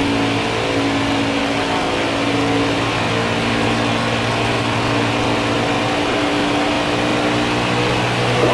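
A racing engine roars steadily at high speed.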